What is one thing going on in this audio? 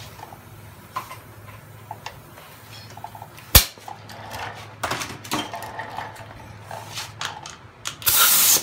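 Metal tools clink and clatter close by.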